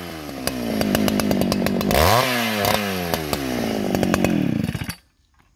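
A chainsaw engine idles and revs up loudly close by, then cuts off.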